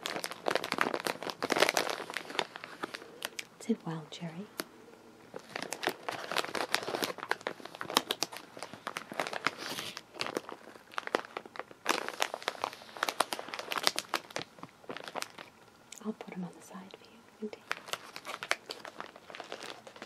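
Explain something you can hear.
Fingers crinkle a plastic wrapper close by.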